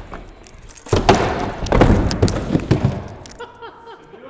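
A skateboarder falls and slides across the ramp.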